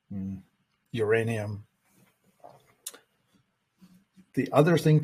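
An elderly man speaks calmly into a microphone, heard as over an online call.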